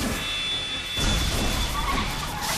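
A puff of smoke bursts out with a loud whoosh.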